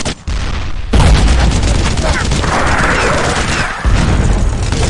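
A rocket launcher fires with a loud, booming blast.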